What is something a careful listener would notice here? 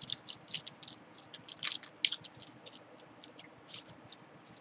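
A plastic wrapper crinkles and rustles close by.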